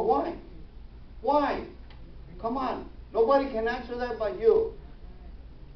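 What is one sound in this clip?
A man speaks with animation in a room with a slight echo.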